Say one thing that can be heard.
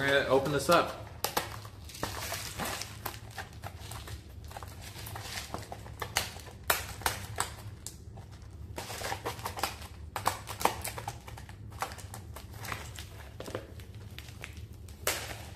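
A plastic noodle cup crinkles and rustles in a man's hands.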